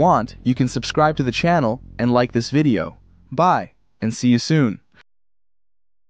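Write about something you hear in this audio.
A young man speaks calmly and clearly into a close microphone.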